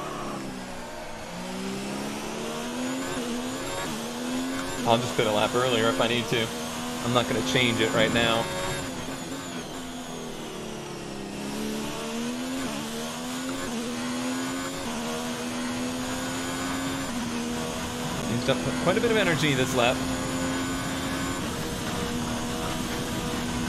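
A racing car engine whines at high revs, its pitch climbing and dropping sharply with each gear change.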